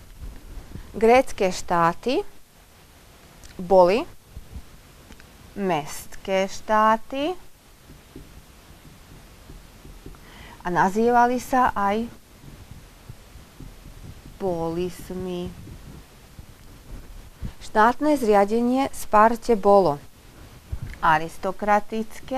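A woman speaks calmly and clearly, pausing between phrases.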